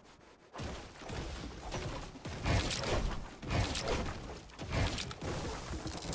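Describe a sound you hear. A pickaxe strikes a wooden wall with repeated knocks.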